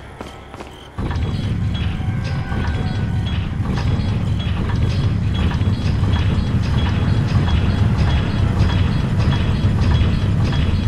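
A heavy stone platform grinds and rumbles as it turns.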